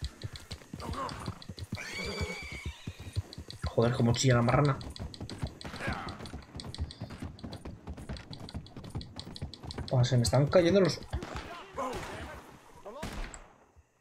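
A horse's hooves clop steadily on the ground and on wooden planks.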